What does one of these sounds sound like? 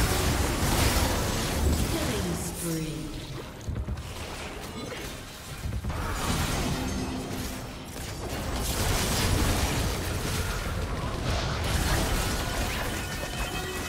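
Magic blasts and weapon hits crackle and boom in a busy fight.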